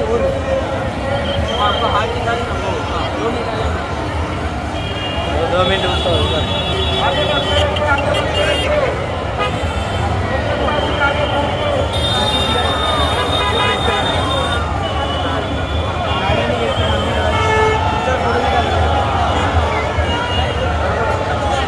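A large crowd chants and cheers loudly outdoors.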